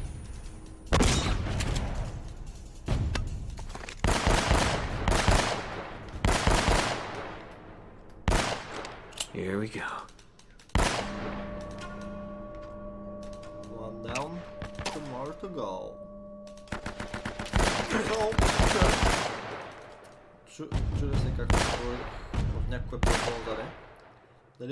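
Pistol shots ring out in quick bursts with echoing reverberation.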